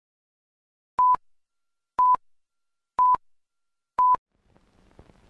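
Short high beeps sound once a second, counting down.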